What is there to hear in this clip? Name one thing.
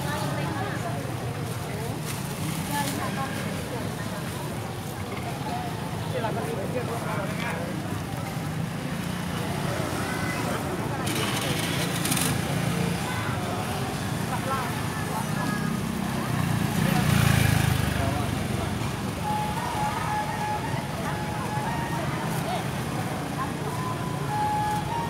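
A crowd of people chatter at an outdoor market.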